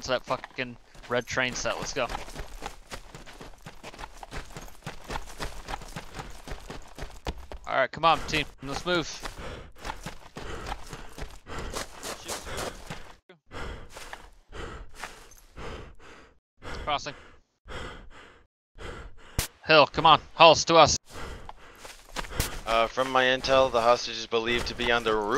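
Footsteps crunch quickly on dirt and gravel.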